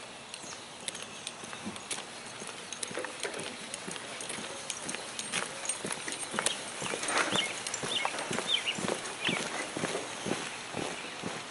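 Footsteps march in step on a paved path outdoors.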